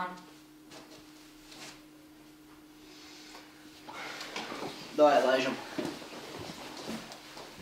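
Footsteps cross the floor.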